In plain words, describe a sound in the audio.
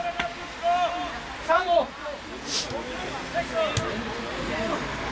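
Young players shout to each other across an open outdoor pitch.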